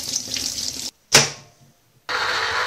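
A knife cuts through a lime on a wooden board.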